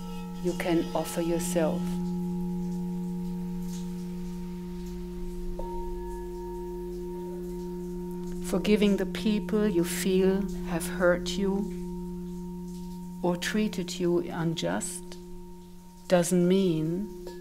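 Crystal singing bowls hum with a steady, ringing drone.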